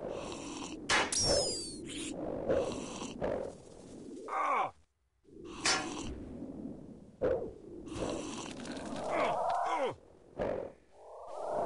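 Weapon blows land on a large beast with sharp, repeated hits.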